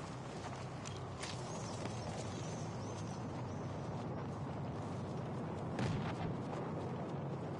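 Footsteps crunch through grass and over rock at a steady walk.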